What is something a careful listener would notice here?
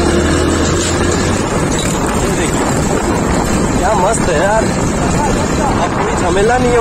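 Wind rumbles loudly against a moving motorbike.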